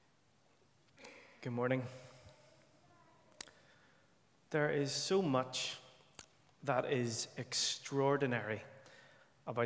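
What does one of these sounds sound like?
A young man speaks through a microphone in an echoing room.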